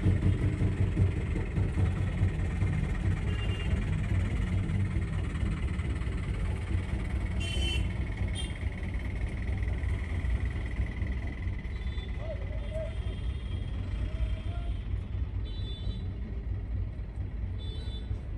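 A vehicle engine rumbles low and steady from inside a car.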